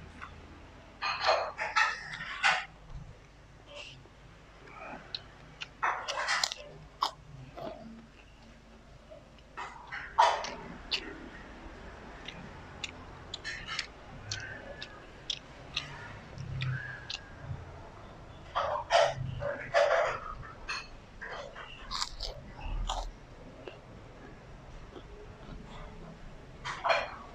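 A young man chews food noisily with his mouth close by.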